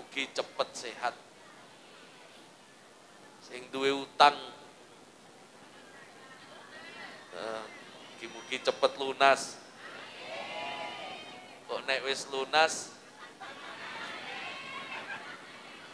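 An elderly man preaches with animation through a microphone and loudspeakers.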